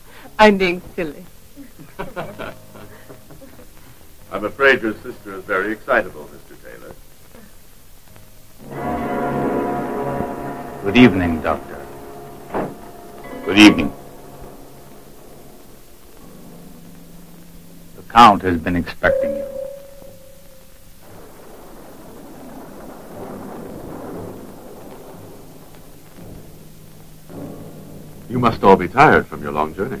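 A woman speaks.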